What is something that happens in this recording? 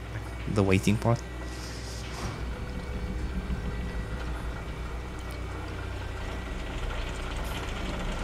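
A gondola car rattles as it arrives on its cable.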